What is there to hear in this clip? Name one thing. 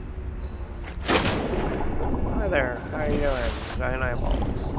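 Water splashes loudly as a diver plunges in.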